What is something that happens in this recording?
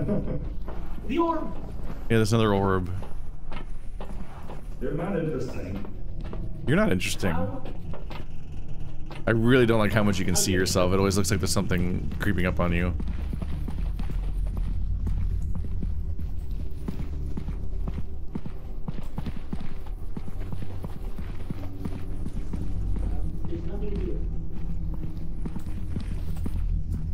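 Footsteps shuffle slowly across a hard floor.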